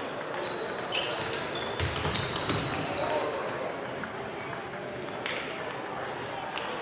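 Table tennis balls click on paddles and tables across a large echoing hall.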